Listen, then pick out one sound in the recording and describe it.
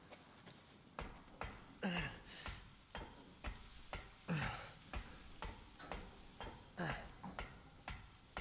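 Footsteps clank on metal ladder rungs.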